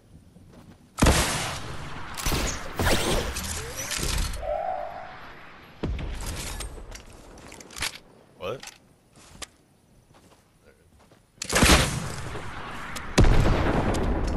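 A rocket launcher fires with a loud whoosh.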